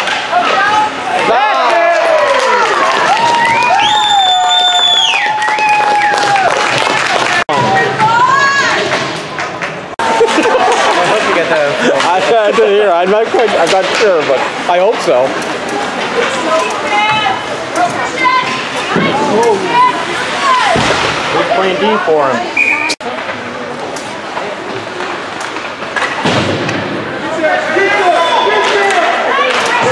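A crowd of spectators cheers and shouts loudly in an echoing arena.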